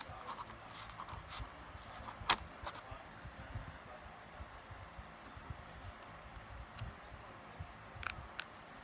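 Plastic tea lights click and clatter as a hand picks them up.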